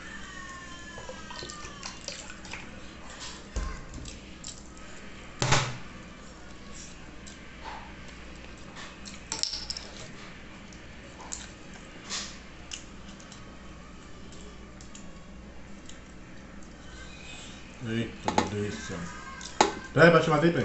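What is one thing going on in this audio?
Fingers squish and crackle through crumbly food.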